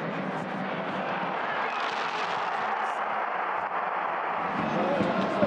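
A crowd roars loudly after a goal.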